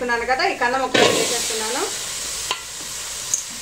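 Chopped vegetable pieces tumble into a metal pot.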